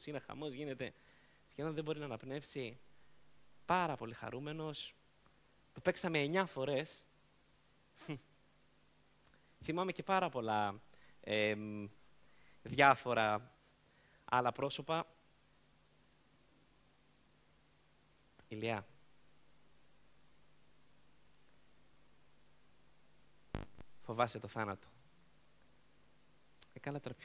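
A man speaks with animation through a microphone, with long pauses.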